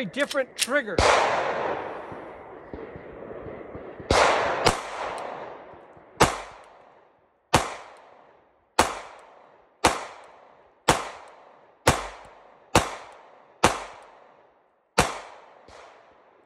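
A pistol fires loud shots one after another outdoors, each crack echoing away.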